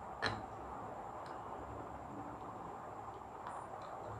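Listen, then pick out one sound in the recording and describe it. A spoon scrapes and stirs flour in a glass bowl.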